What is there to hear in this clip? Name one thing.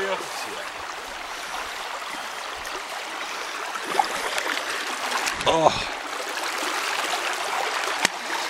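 Shallow water flows and babbles over stones outdoors.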